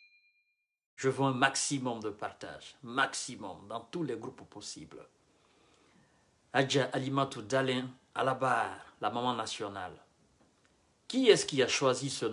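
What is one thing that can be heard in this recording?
A man speaks calmly and close, as if into a phone.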